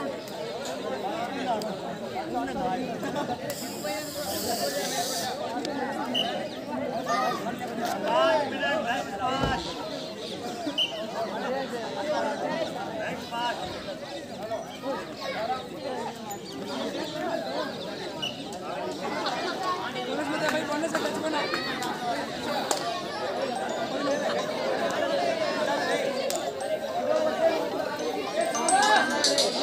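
Young men shout to each other as they play.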